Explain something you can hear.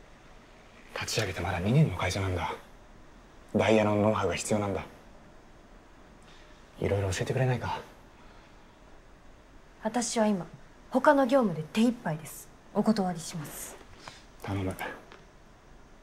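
A young man speaks softly and earnestly, close by.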